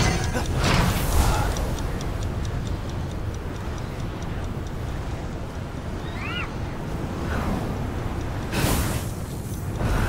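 Wind rushes past during a glide through the air.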